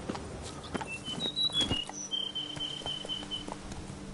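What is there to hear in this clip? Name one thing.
A horse's hooves thud on a dirt path.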